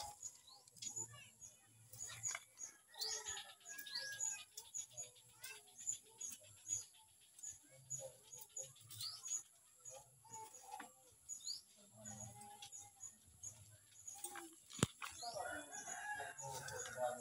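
Turkeys gobble and call close by.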